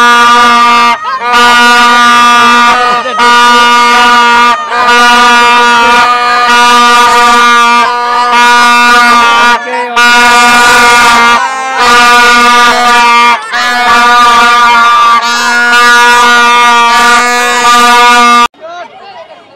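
Boys blow loud plastic horns in long, steady blasts.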